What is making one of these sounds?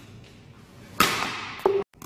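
A racket strikes a shuttlecock with a sharp smack.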